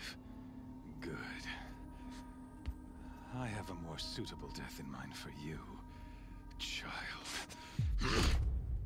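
A man speaks slowly and menacingly, close by.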